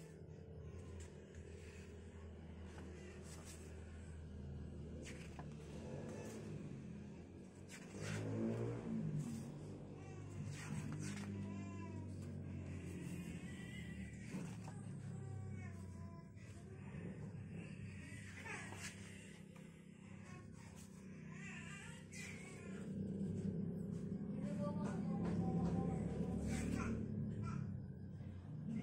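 Paper pages rustle and flip as a book's pages are turned.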